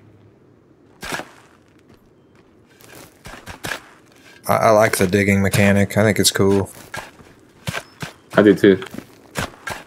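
Shovels scrape and thud into dry dirt.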